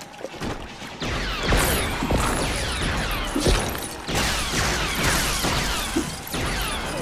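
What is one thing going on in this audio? Small plastic pieces clatter and burst apart.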